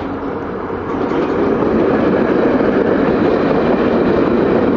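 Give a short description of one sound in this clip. Passenger coaches' steel wheels rumble and clatter on rails close by.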